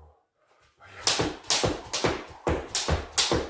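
A skipping rope slaps the floor in a quick rhythm.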